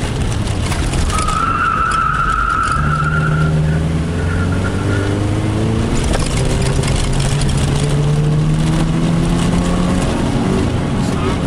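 Wind and road noise rumble steadily inside the moving car.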